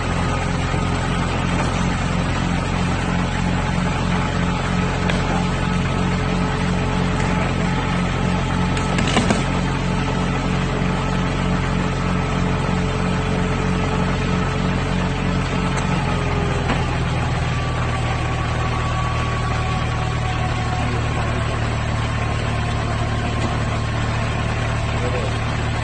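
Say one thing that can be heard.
A tow truck's winch hums steadily.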